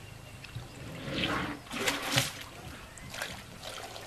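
Water splashes as a tyre is lifted out of a shallow puddle.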